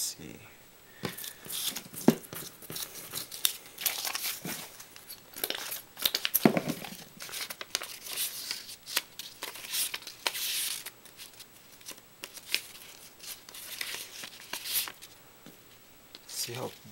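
A sheet of paper rustles and crinkles in hands.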